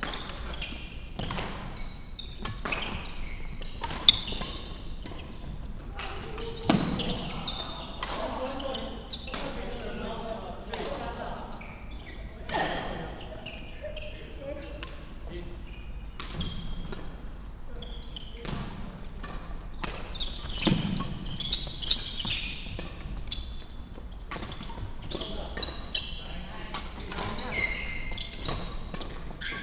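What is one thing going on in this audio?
Shoes squeak on a wooden floor.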